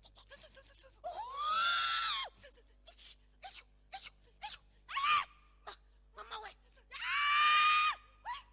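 A woman cries out and screams loudly.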